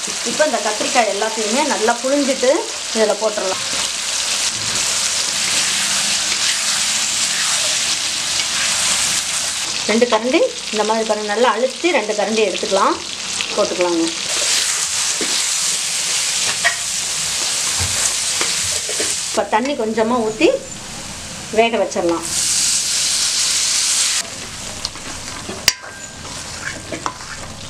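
A metal spoon scrapes against a pan while stirring.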